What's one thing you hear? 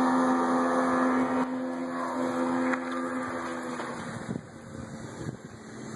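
The wake of a boat washes against a shore.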